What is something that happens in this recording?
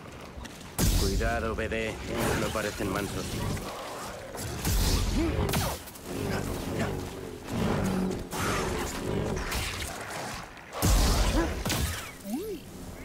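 Lightsaber blades clash and crackle in fast, heavy strikes.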